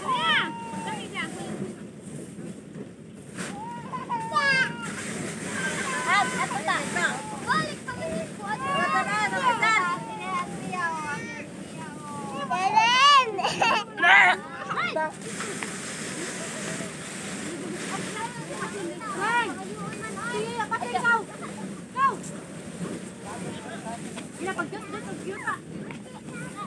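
Women talk and chatter nearby outdoors.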